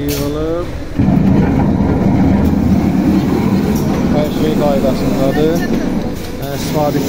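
A filling machine clatters and whirs loudly.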